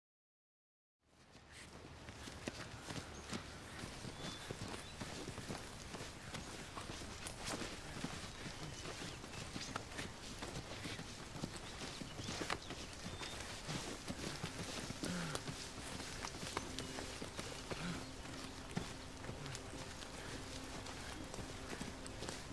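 Footsteps rustle and crackle through dense undergrowth.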